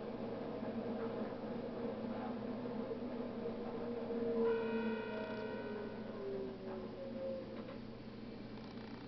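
An electric train's motors whine and fall in pitch as the train slows.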